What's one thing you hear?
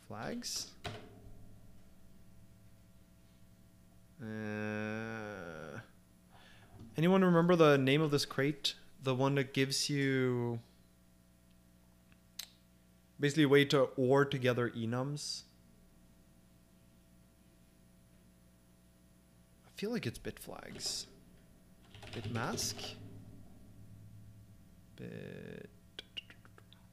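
A man speaks calmly and thoughtfully into a close microphone, with pauses.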